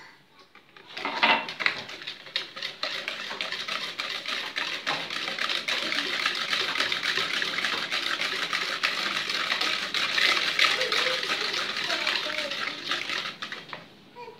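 A whisk clatters rapidly against a bowl, beating a liquid.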